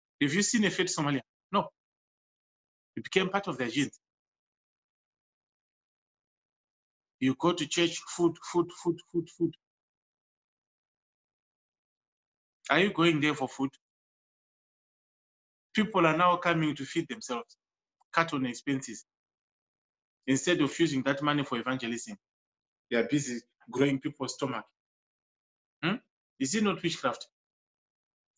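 A man speaks calmly in bursts with pauses, close to a microphone, as if on an online call.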